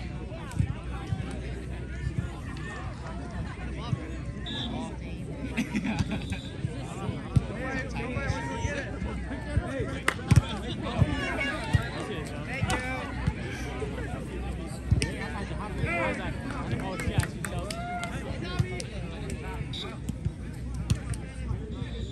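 A volleyball is struck by hand with sharp slaps.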